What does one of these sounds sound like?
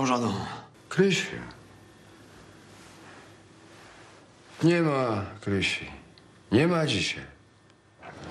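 A middle-aged man speaks quietly, close by.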